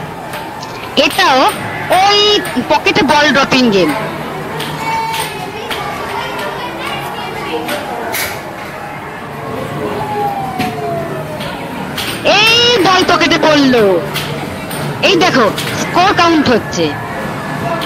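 An arcade machine plays loud electronic jingles in short bursts.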